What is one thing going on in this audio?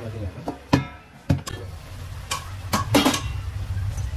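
A metal lid clanks as it is lifted off a steel pot.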